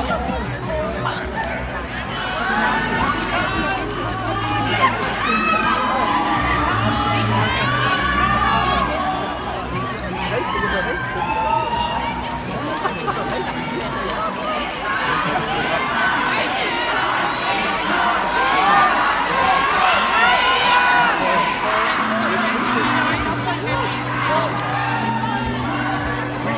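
A large crowd of men and women shouts and cheers excitedly outdoors.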